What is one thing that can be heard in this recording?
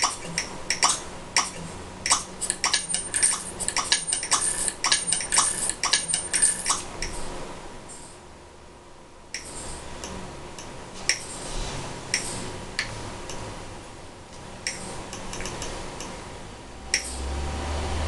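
Soft menu clicks and beeps sound from a television speaker.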